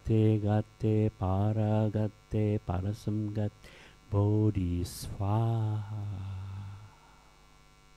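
A middle-aged man speaks forcefully and with animation, close to a microphone.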